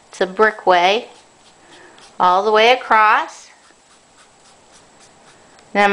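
A felt-tip marker squeaks and scratches faintly on paper.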